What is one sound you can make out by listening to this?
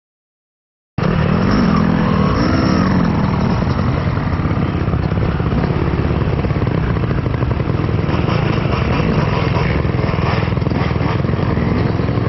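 Dirt bike engines idle and rev nearby.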